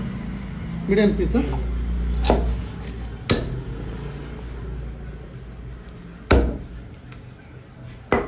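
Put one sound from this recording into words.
A knife slices softly through raw meat.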